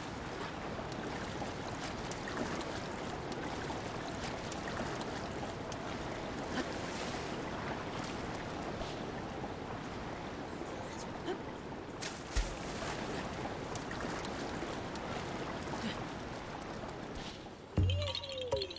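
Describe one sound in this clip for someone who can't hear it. Water splashes and churns steadily as a swimmer paddles.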